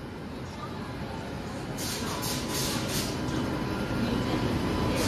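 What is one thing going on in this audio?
An electric locomotive rumbles as it starts to roll away.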